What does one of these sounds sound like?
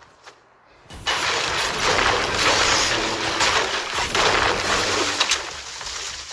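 A pickaxe strikes a tree trunk with repeated chopping thuds.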